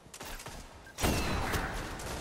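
Gunshots crack loudly in a video game.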